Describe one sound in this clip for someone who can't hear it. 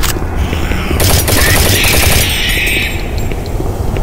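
A gun fires a burst of rapid shots.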